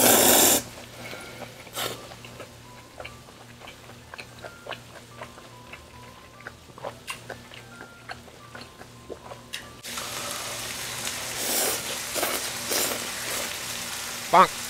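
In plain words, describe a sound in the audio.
A young woman chews and smacks her food close to a microphone.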